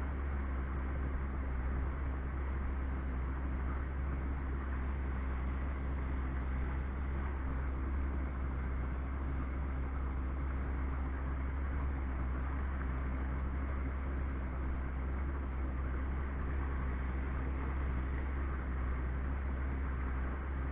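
A boat engine hums steadily close by.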